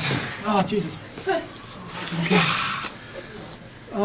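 A young man groans and cries out loudly, close by.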